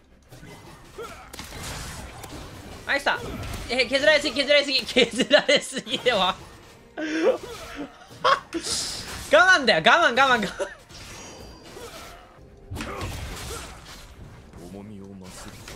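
Video game fighting effects clash and whoosh.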